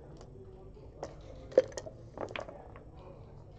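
Dice rattle and clatter onto a board.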